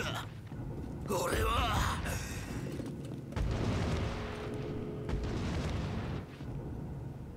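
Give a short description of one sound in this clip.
A man answers in a strained voice.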